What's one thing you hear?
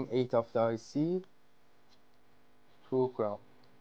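A wire clicks faintly as it is pushed into a breadboard.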